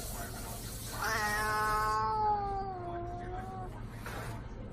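A cat yowls in a long, wavering growl.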